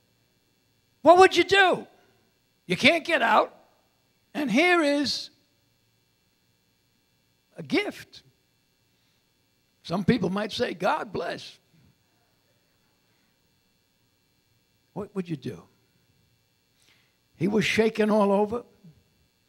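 An elderly man preaches with animation through a microphone, pausing between phrases.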